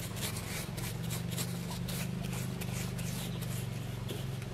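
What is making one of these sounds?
A paintbrush scrapes and swishes against a rubber tyre.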